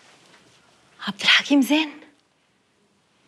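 A young woman speaks tensely.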